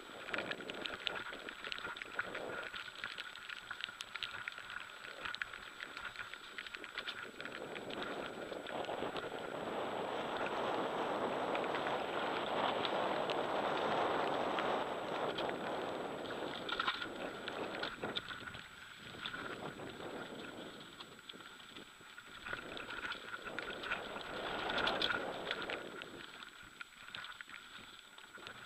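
Wind rushes past, rising and falling with speed.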